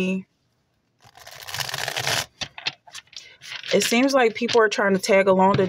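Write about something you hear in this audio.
A stack of playing cards riffles and shuffles.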